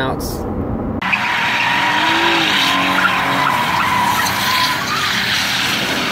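Tyres squeal on pavement as a car spins.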